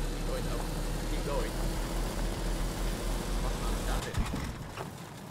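A car engine rumbles steadily as the car drives along.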